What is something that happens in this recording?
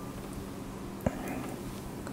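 A bowl clinks against chopsticks.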